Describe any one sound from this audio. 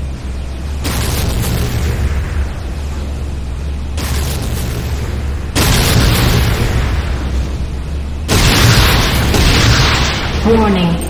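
A hovering vehicle's engine hums low and steady.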